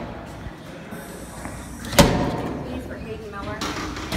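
A door clanks open.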